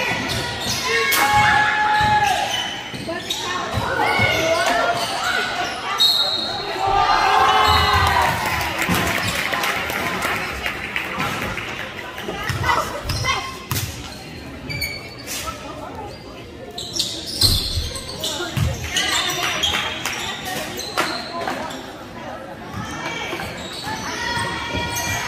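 Spectators murmur and call out in the background.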